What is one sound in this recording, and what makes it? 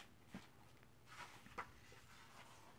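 Paper pages rustle and flip as a book's page is turned.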